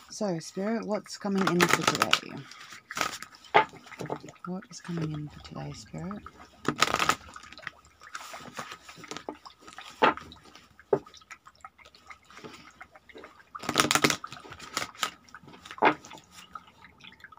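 Playing cards riffle and slap together as a deck is shuffled by hand.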